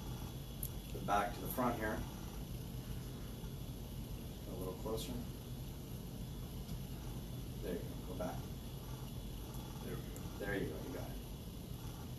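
A man speaks calmly nearby, in short bursts with pauses.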